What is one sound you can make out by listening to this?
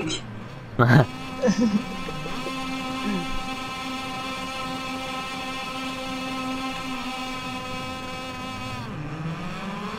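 A motorcycle engine idles with a steady hum.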